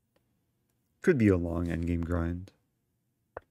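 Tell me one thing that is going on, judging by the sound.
A young man speaks briefly close to a microphone.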